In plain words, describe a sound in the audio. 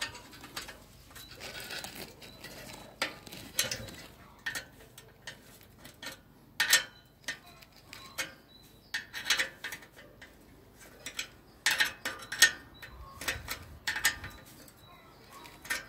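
A metal wrench clicks and clanks against a bicycle's wheel nut.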